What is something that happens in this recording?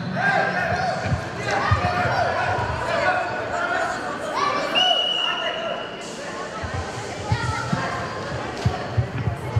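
A crowd of children shouts and cheers in an echoing hall.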